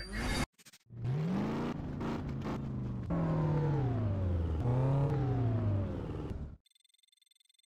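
A sports car engine revs and roars loudly.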